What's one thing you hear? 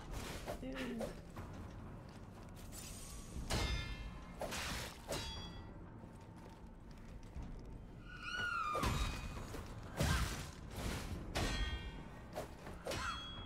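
Swords clash and slash with sharp metallic rings.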